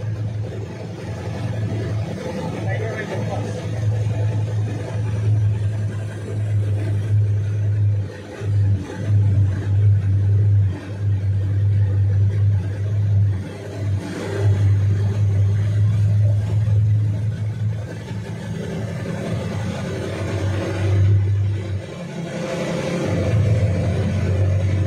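Floodwater swishes and splashes as a vehicle drives through it.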